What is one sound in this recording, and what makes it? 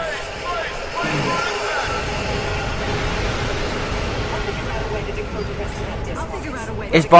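A heavy crash booms and rumbles on.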